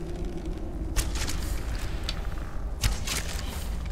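A bowstring twangs sharply as an arrow is shot.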